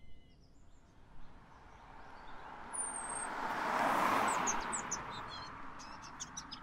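A car approaches on a paved road and passes by.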